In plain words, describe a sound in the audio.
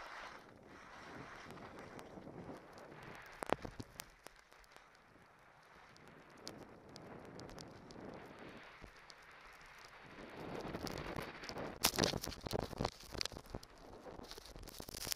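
Wind rushes past a microphone.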